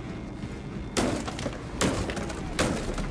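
Wooden boards crack and splinter as a crate is smashed.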